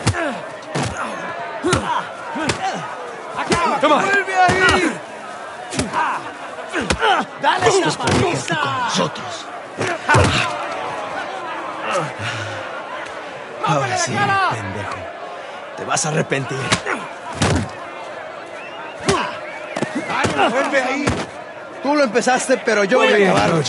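A man shouts angrily at close range.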